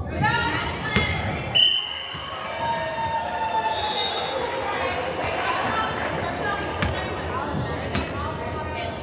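A volleyball thumps off hands and the floor.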